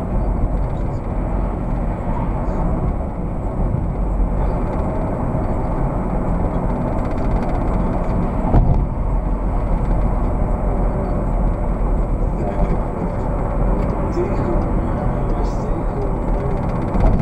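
Tyres roll and rumble on the road surface.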